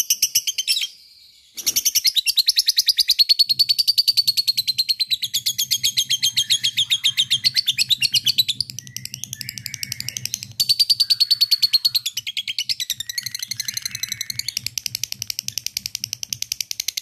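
A lovebird chatters in a fast, shrill, rapid trill close by.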